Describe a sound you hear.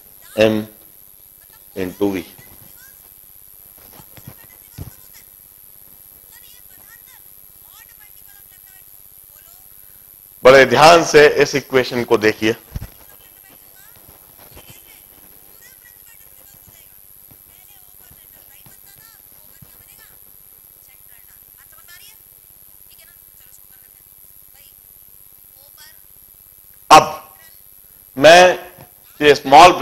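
A man lectures calmly into a clip-on microphone.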